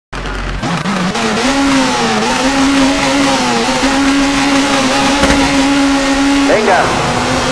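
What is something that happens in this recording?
A rally car engine idles and revs steadily.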